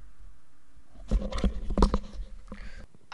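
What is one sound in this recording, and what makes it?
Wood is struck with repeated dull knocks.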